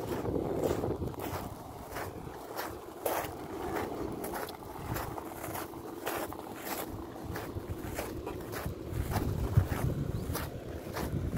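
A minibus engine rumbles as the vehicle rolls slowly by outdoors.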